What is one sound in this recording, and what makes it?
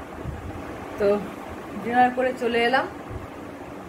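A middle-aged woman speaks casually, close to the microphone.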